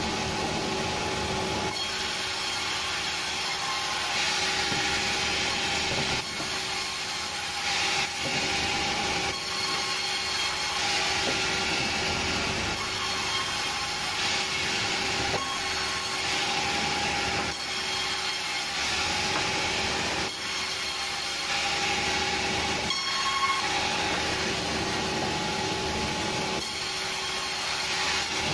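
A band saw whines steadily as it cuts through logs.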